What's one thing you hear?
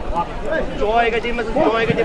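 A man speaks loudly through a megaphone.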